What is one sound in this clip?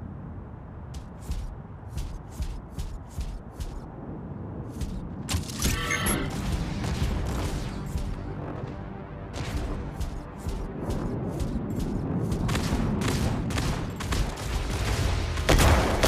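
Heavy robot footsteps clank in a steady rhythm.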